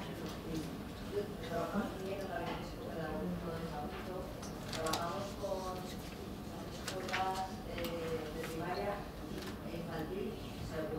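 A man speaks calmly through a microphone and loudspeakers in a large echoing hall.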